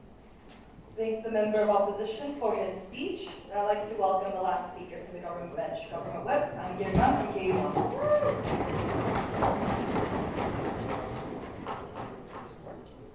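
A woman speaks calmly into a microphone, heard over loudspeakers in a large echoing hall.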